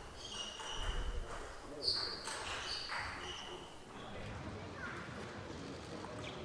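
A table tennis ball clicks sharply against paddles and the table.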